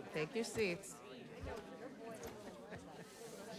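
A young man answers casually.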